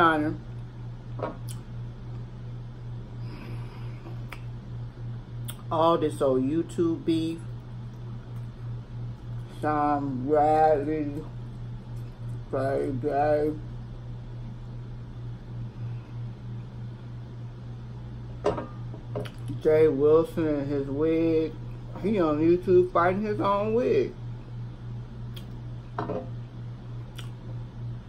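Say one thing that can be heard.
A woman chews food with her mouth close to a microphone.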